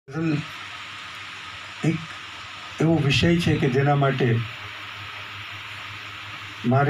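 An elderly man speaks into a microphone over a loudspeaker, with pauses, in an echoing hall.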